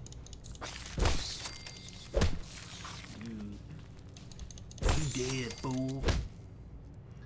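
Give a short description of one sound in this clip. Heavy punches thud against a large insect.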